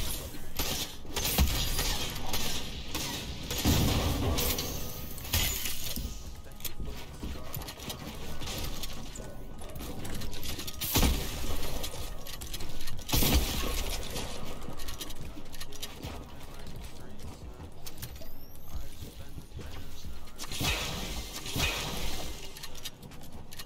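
Wooden building pieces snap into place in quick clattering bursts.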